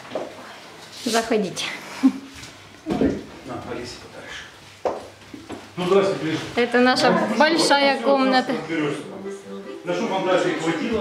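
An elderly woman talks and laughs close by.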